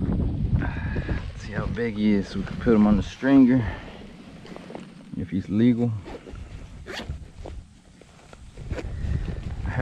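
Hands rummage and rustle through a fabric bag.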